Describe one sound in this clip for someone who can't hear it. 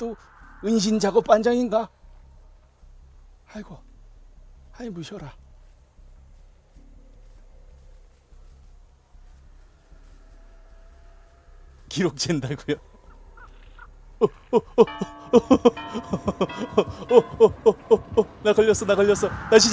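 Footsteps run through dry grass.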